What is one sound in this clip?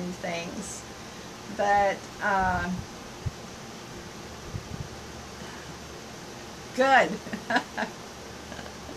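An older woman speaks cheerfully and close by, in short bursts.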